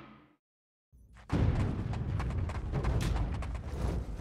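A game's battle music and fight effects start up loudly.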